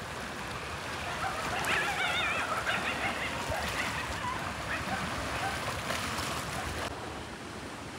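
Choppy water washes against a shore.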